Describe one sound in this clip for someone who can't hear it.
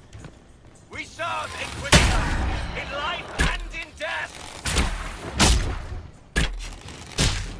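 Weapons clash and spells burst in a fight.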